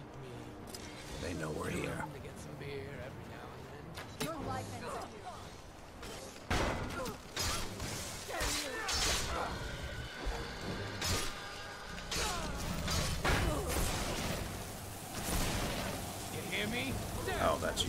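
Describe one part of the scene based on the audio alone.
A magic spell crackles and bursts with a whoosh.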